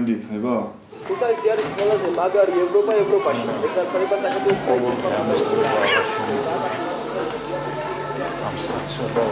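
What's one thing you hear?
Several men and women talk over one another nearby.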